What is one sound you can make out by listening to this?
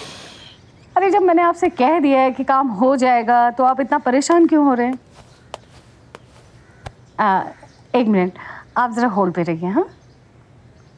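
A woman talks on the phone with animation, close by.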